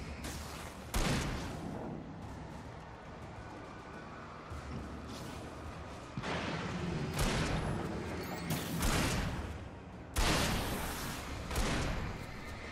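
Gunshots boom loudly and echo afterward.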